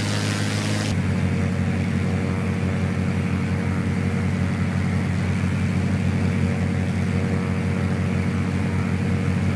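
A propeller engine drones, heard muffled from inside a cabin.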